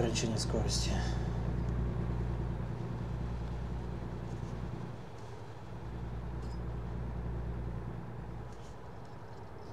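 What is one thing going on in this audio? A truck engine hums steadily while driving on a highway.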